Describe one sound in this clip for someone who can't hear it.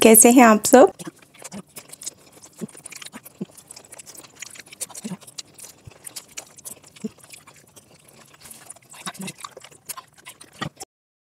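A woman chews food and makes soft eating sounds close to a microphone.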